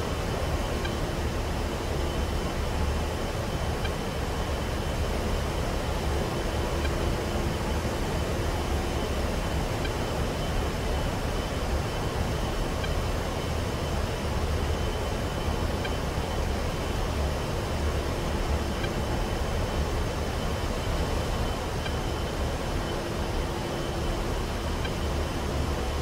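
The turbofan jet engines of a ground-attack jet roar steadily in flight, heard from inside the cockpit.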